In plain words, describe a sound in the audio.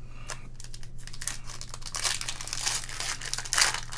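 A plastic card wrapper crinkles and tears in someone's hands.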